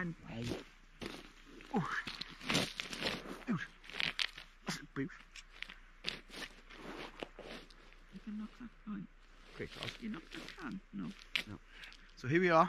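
A man talks nearby in a relaxed, chatty way.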